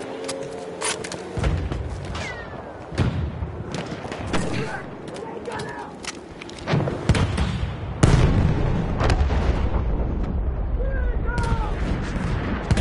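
Gunfire cracks and booms in the distance.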